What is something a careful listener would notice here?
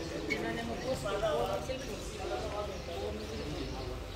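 Young men talk calmly in the background.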